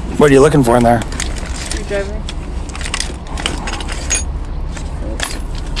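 Metal tools clink and rattle in a bag.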